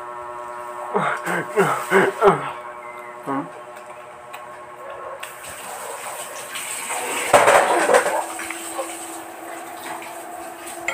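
Crispy fried food crunches as a young man bites it.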